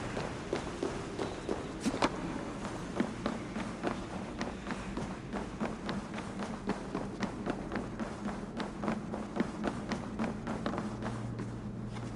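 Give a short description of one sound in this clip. Footsteps thud on wooden floorboards at a steady walking pace.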